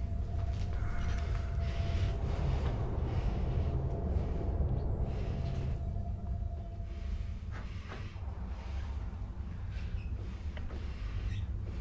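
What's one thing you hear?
Metal instruments clink softly on a tray.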